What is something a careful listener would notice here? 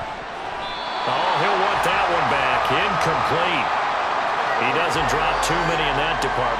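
A stadium crowd cheers louder after a play.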